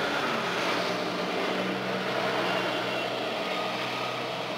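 A diesel train rumbles and hums as it rolls past close by.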